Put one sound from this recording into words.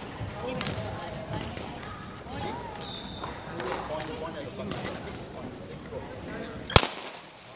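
Children talk and call out in a large echoing hall.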